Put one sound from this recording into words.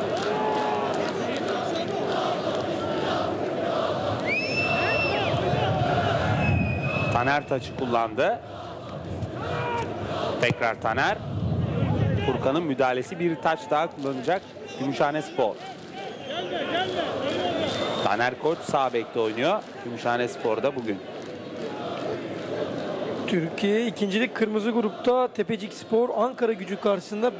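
A stadium crowd murmurs and chants in the open air.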